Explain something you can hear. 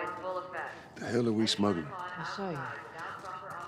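A man speaks in a low, gruff voice close by.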